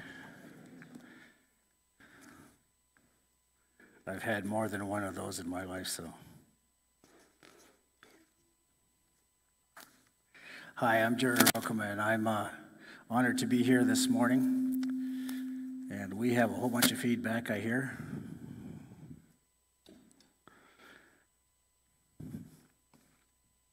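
An elderly man speaks with feeling through a microphone in an echoing hall.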